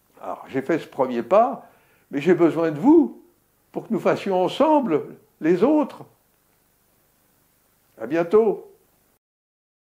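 An elderly man speaks calmly into a close microphone, in short phrases with pauses.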